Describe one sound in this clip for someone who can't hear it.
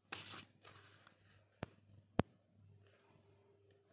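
A plastic ruler taps down onto paper.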